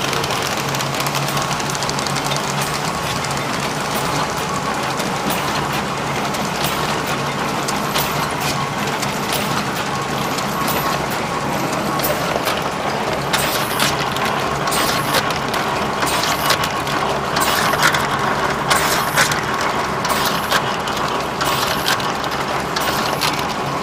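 Metal parts clack rapidly.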